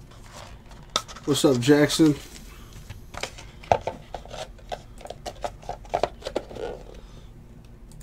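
Hands shuffle and crinkle card packs.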